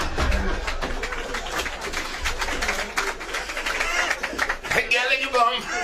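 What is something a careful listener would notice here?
A man laughs heartily into a microphone.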